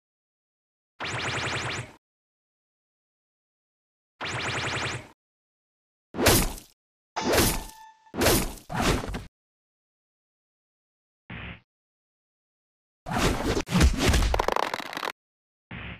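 Sharp hit sounds crack in quick bursts.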